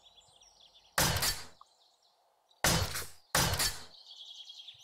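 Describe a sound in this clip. A power tool strikes hard against a stone wall.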